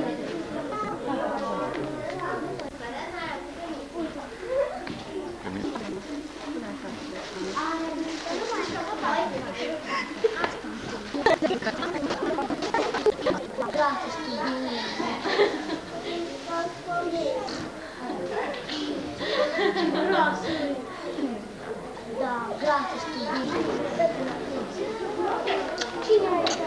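Children chatter and talk close by.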